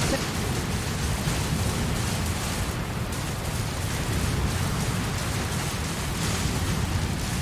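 Wind blows steadily in a snowstorm.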